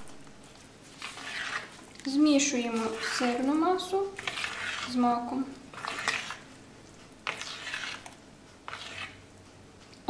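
A spoon stirs and scrapes a moist mixture in a bowl.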